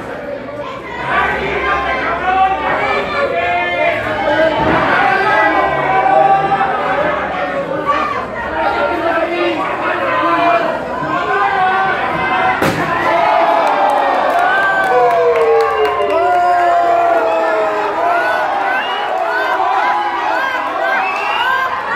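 A large crowd shouts and chants loudly in an echoing hall.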